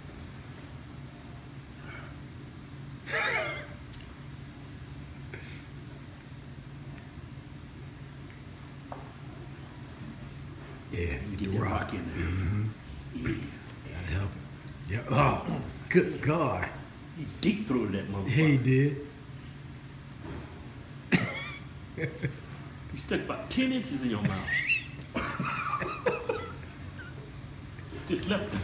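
A man chews and munches food loudly.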